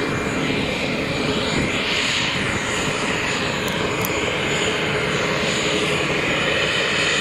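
A Boeing 737 jet airliner taxis with its turbofan engines whining.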